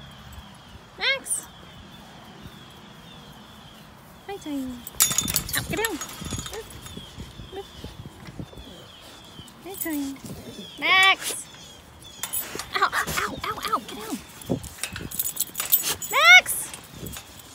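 A dog whines and yelps close by.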